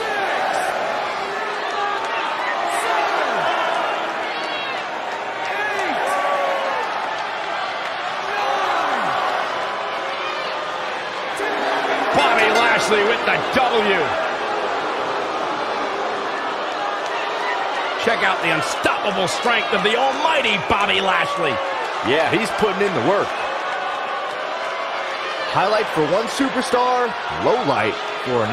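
A large crowd cheers and shouts in an echoing arena.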